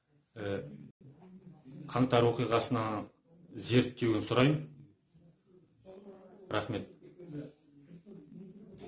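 A young man speaks calmly and close up into a microphone.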